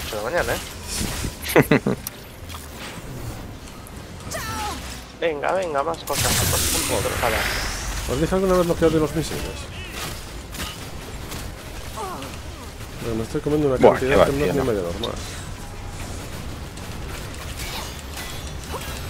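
Energy blasts and explosions crackle and boom in a fight.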